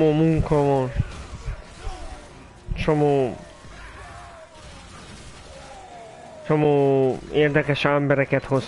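A young man talks with animation, close through a microphone.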